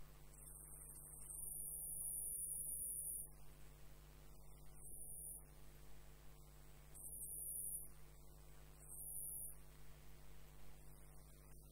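A wood lathe motor hums.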